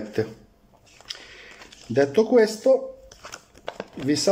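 Paper rustles as a leaflet is handled.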